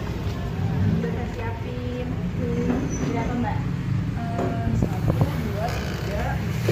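Young women talk close by, with animation.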